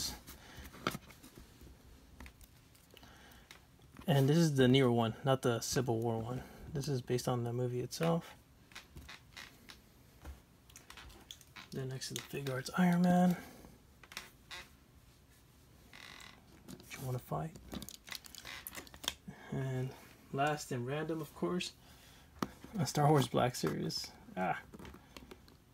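Small plastic figures tap and click on a hard surface.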